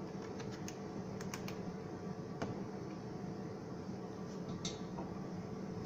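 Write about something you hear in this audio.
Plastic parts click and knock as a device is handled.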